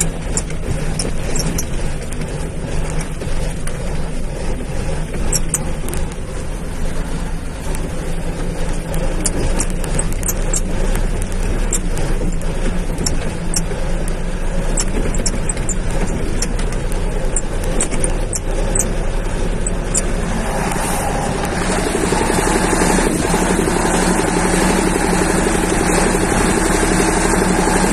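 Wind blows loudly past the vehicle.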